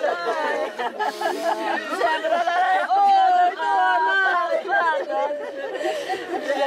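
Several women wail and lament loudly, close by.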